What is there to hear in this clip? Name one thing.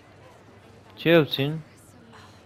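A young woman speaks up loudly and close.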